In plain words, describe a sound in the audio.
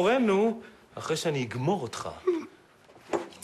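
A man speaks threateningly up close.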